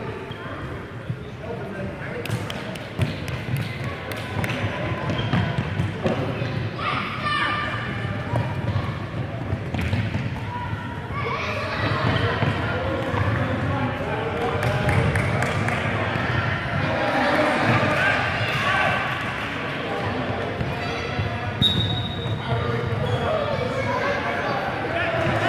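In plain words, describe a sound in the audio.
A ball thuds off feet and the floor in a large echoing hall.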